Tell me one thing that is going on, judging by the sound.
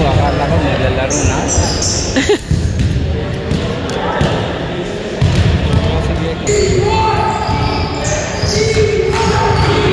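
Young players and spectators chatter and call out in a large echoing gym.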